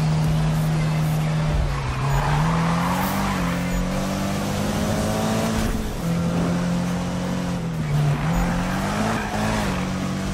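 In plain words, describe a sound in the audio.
A car engine roars at high revs, rising and dropping as gears shift.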